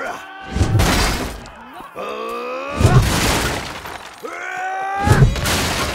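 Heavy weapon blows land with loud, dull thuds.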